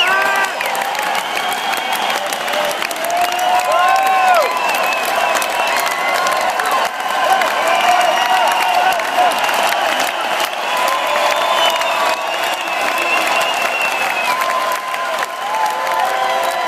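A crowd cheers, shouts and whistles.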